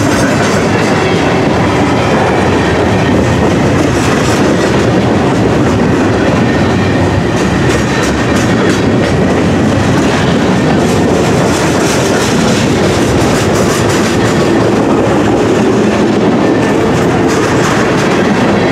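A freight train of ballast hopper cars rolls past close by.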